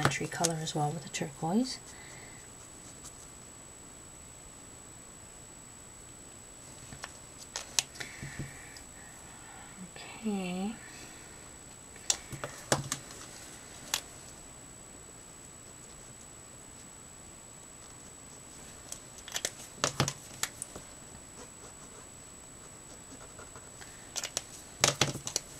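A felt-tip marker squeaks faintly across paper.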